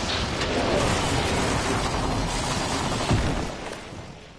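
Wind rushes loudly past during a fall, then cuts off.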